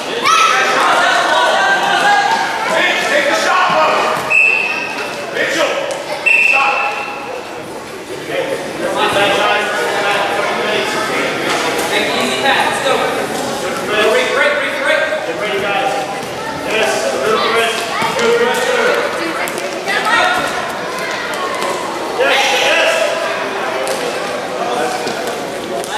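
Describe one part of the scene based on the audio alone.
Spectators shout and cheer in an echoing indoor hall.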